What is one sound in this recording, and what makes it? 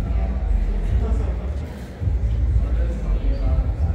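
Men and women chat quietly nearby in a large echoing room.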